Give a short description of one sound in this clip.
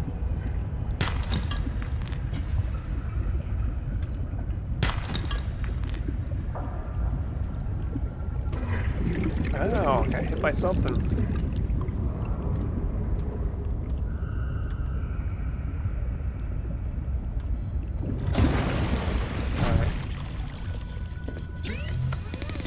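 A low underwater rumble goes on throughout.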